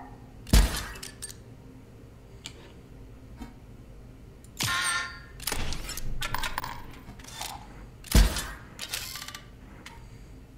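Electronic game sounds whoosh and thud as cards are played.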